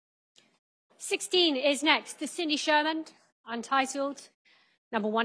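A woman speaks clearly and briskly through a microphone in a large room.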